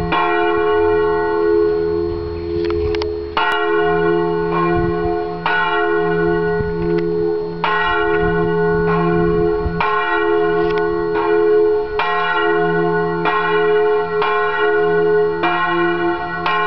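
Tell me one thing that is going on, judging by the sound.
Church bells ring loudly overhead, each stroke ringing on and overlapping the next.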